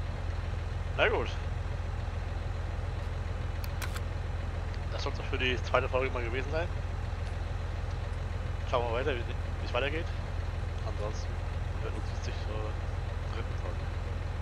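A man speaks in short, calm bursts close to a microphone.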